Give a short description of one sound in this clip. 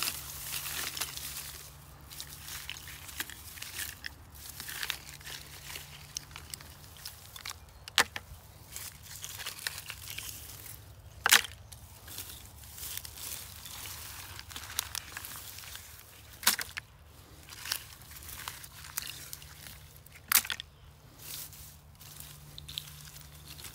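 A hand rustles through tall grass.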